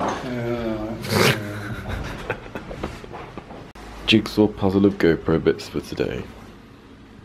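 A middle-aged man speaks casually close by.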